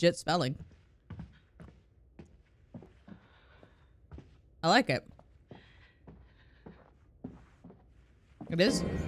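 Footsteps tap slowly across a wooden floor.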